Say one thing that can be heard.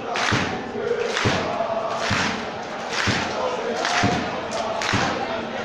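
A crowd of spectators chants rhythmically in an open stadium.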